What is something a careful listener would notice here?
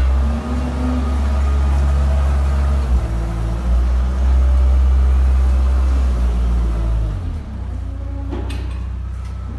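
A heavy machine engine hums with a deep, steady drone.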